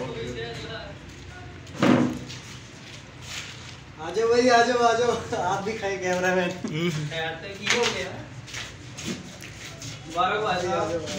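Young men talk with animation close by.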